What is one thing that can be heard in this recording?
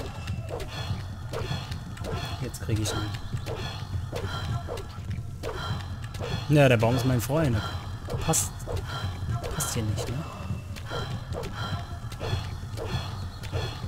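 A blade swings repeatedly through the air with swishing sounds.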